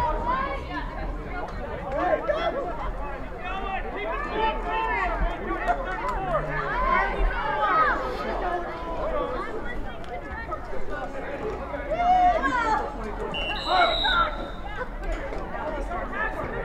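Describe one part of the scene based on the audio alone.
Young women shout and call out to each other outdoors across an open field.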